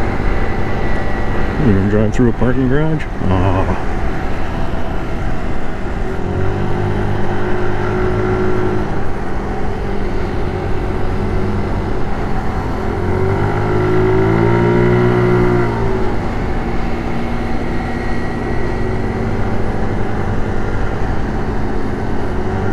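A scooter engine hums and rises in pitch as it speeds up.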